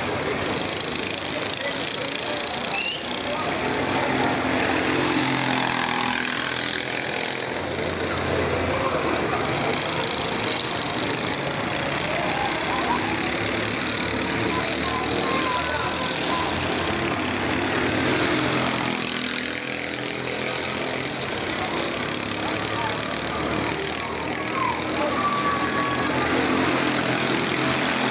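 A go-kart engine buzzes loudly, revving up and down as it races past.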